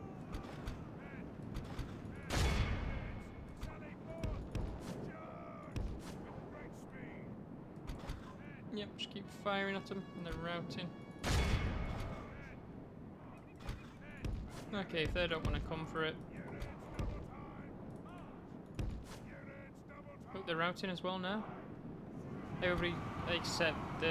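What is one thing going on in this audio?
A battle rages with a steady din of clashing weapons.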